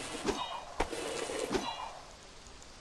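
A spinning top grinds along a metal rail with a whirring clatter.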